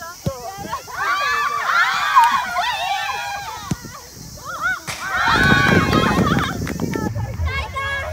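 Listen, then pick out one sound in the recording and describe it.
A group of young women cheer and shout excitedly outdoors.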